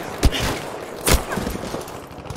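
A loud explosion bursts close by.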